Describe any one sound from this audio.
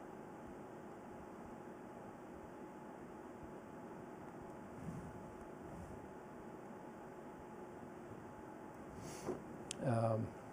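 A man writes with a pen on paper.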